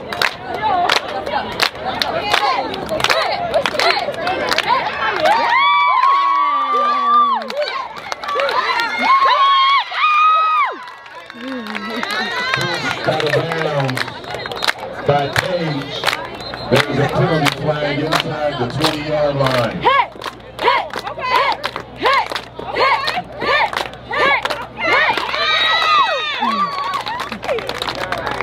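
A young woman chants loudly.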